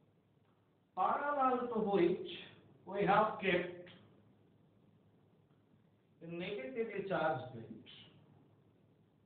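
A man speaks calmly and clearly, explaining.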